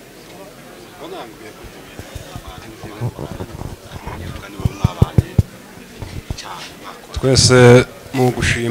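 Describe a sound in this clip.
A man speaks loudly into a microphone through a loudspeaker in an echoing hall.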